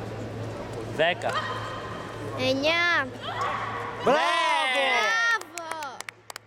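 Spectators shout and cheer loudly.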